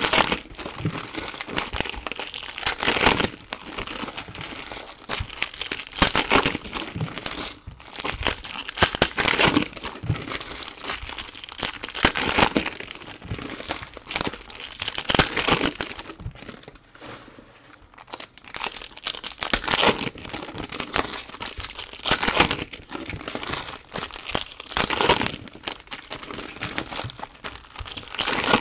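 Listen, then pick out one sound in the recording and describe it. Plastic card wrappers crinkle and tear close by.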